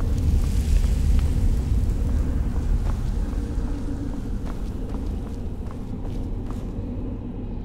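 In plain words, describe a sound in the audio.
Footsteps tread on stone floor.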